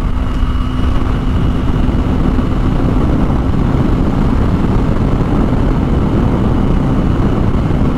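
A motorcycle engine hums steadily while riding.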